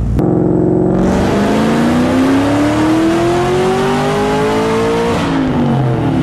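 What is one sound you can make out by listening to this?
A supercharger whines, rising in pitch as the engine revs.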